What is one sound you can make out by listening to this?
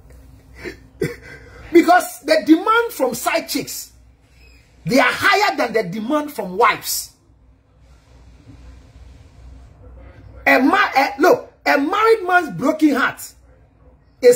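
A man speaks with animation close to a microphone, in bursts with pauses.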